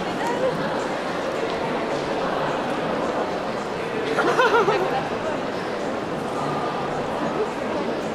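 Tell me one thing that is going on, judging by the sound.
Many footsteps shuffle and tap on a hard floor.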